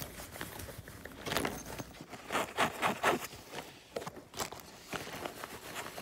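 Fingers tap and scratch on a fabric case close by.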